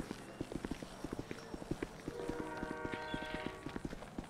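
Footsteps thud quickly on a hard surface.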